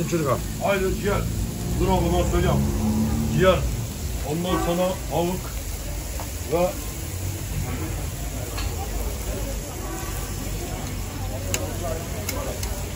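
Meat patties sizzle on a hot griddle.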